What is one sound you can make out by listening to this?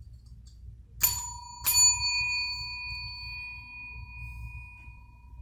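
A small desk bell rings twice with a bright, lingering ring.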